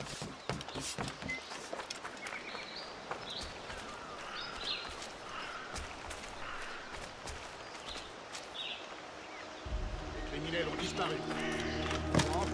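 Footsteps run quickly over dirt and grass.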